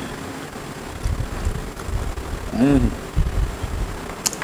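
A man chews food loudly.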